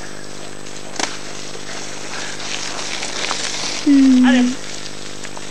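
Mountain bike tyres crunch over a gravel path as the bike passes close by.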